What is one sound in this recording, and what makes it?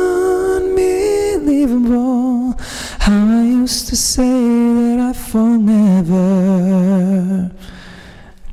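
A man sings loudly into a close microphone.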